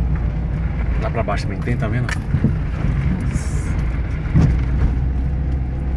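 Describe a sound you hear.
A car bumps and rattles over a rough dirt road.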